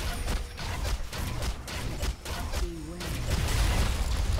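Magic spells crackle and strike in a fast, noisy fight.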